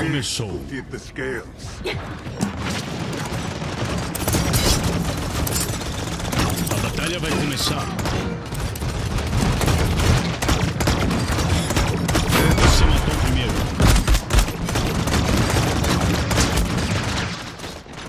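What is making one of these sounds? Magic weapons fire in rapid bursts of zaps and blasts.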